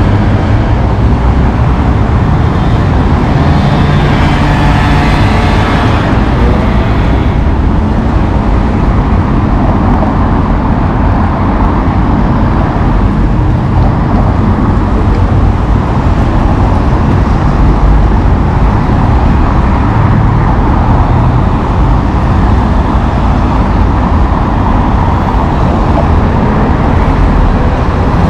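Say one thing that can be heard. Cars drive past close by on a busy street.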